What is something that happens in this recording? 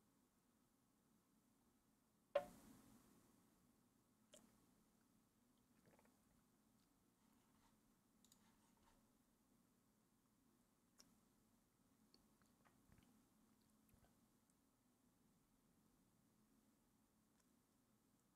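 A man sips a drink close to a microphone.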